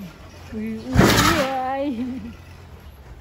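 A young elephant blows a sharp puff of air through its trunk.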